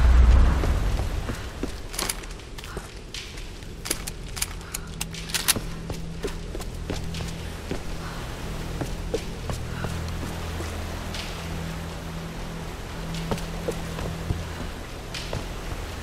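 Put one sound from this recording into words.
Footsteps run over dirt and rock.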